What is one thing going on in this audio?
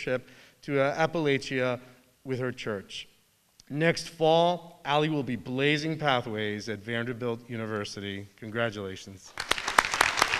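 A man speaks into a microphone over a loudspeaker in a large hall.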